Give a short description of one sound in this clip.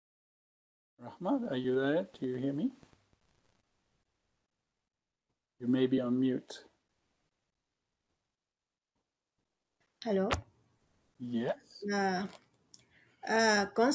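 A man speaks calmly in short phrases over an online call, with pauses between them.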